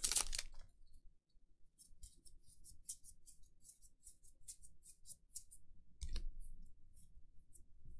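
Playing cards slide and flick against one another.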